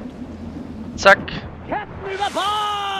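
A body plunges into water with a loud splash.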